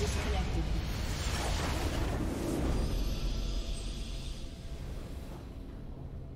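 A loud explosion booms and rumbles, then fades.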